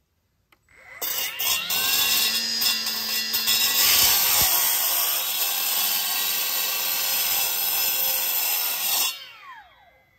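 A cut-off saw whines loudly as its blade grinds through concrete block.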